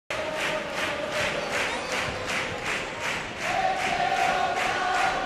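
A large crowd claps along in a steady rhythm in a big echoing hall.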